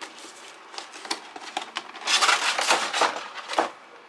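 Cardboard flaps rustle and crinkle as a box is opened.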